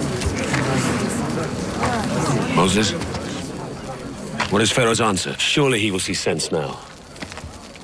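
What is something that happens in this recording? A man speaks in a low, grave voice.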